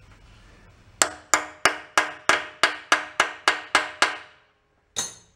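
A ratchet wrench clicks rapidly as it turns.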